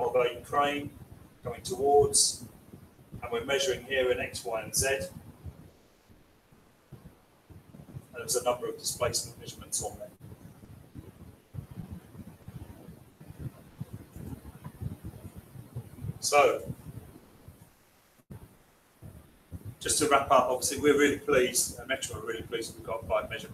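A man speaks calmly, presenting to a room in bursts with pauses.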